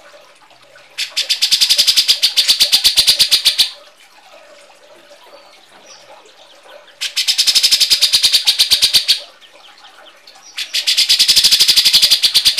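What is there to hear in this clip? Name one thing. A bird gives loud, harsh, rapid chattering trills in repeated bursts.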